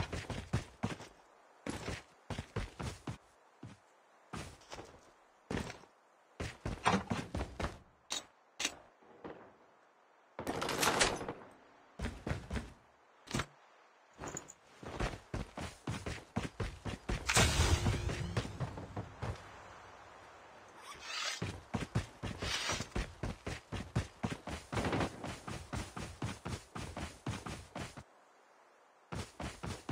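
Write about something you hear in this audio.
Footsteps thud quickly on the ground as someone runs.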